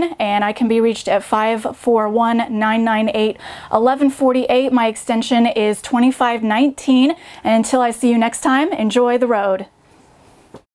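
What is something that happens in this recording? A young woman speaks cheerfully and clearly into a microphone close by.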